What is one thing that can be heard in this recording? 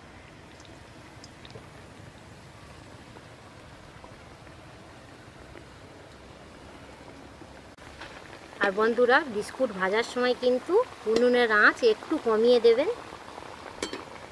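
Oil sizzles and bubbles in a pan.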